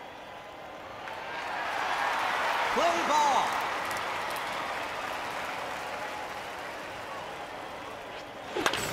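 A crowd cheers in a large stadium.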